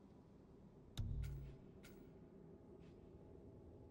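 Game menu selections tick with short clicks.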